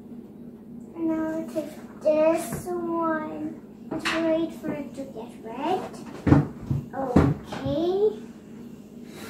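A young girl talks in a high, lively voice close by.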